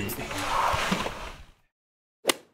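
A young man talks close by.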